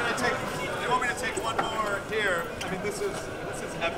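A man speaks through a microphone over loudspeakers.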